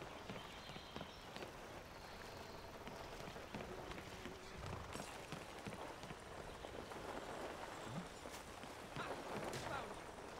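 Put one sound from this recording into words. Footsteps thud on a path.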